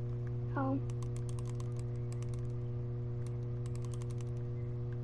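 A music box key clicks as it is wound.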